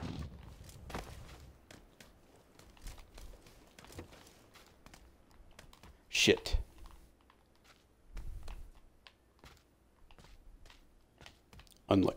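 Footsteps thud on the ground and a wooden floor.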